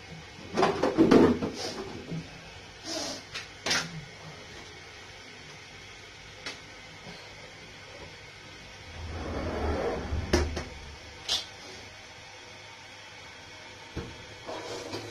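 Things knock and clatter in a small echoing room.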